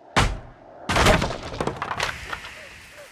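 A wooden board splinters and crashes loudly.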